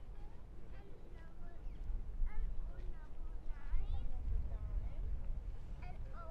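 A woman talks as she walks past close by.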